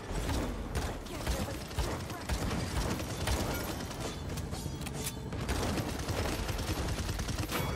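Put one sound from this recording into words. Video game gunfire shots ring out.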